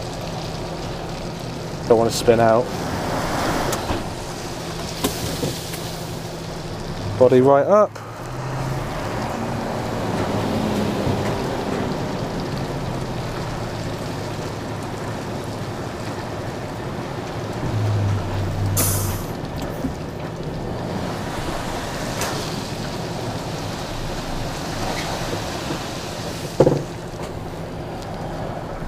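A machine engine idles with a steady low hum.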